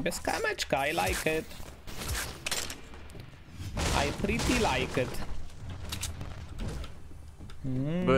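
Game sound effects clatter and swoosh.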